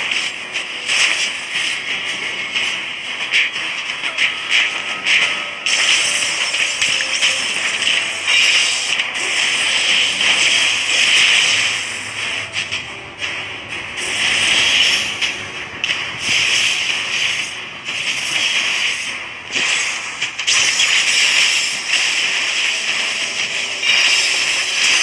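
Game battle effects whoosh and clash in quick bursts.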